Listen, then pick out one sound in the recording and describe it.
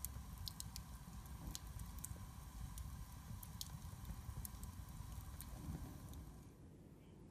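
A wood fire crackles and pops softly.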